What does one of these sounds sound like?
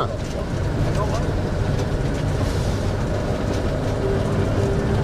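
Tyres crunch and rumble over a gravel road.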